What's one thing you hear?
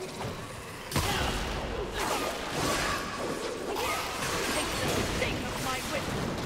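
Blows and slashes clash loudly in a fight.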